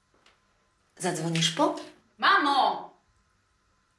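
A young woman speaks up sharply, close by.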